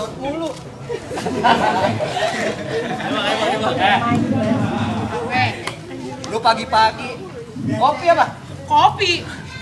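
A woman speaks loudly and with animation close by.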